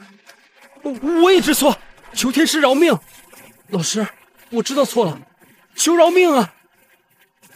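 An elderly man speaks in a low, pleading voice.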